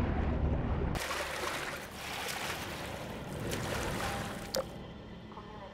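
Water splashes and drips as someone climbs out.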